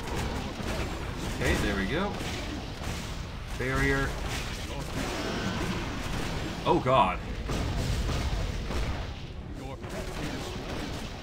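Magic spells crackle and blast in quick bursts.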